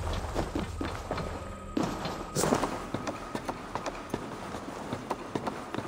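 Hands and feet clunk on a wooden ladder while climbing.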